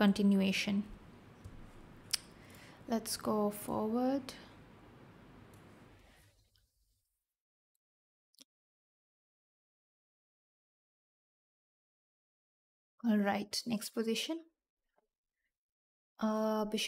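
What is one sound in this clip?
A young woman speaks with animation into a close microphone, pausing between phrases.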